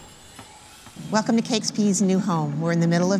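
A woman speaks clearly and close to a microphone.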